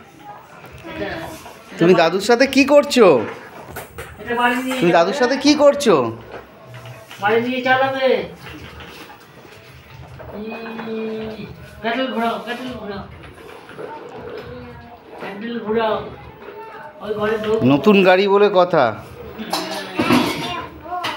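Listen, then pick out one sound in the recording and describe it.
An elderly man talks close by in a gentle, animated voice.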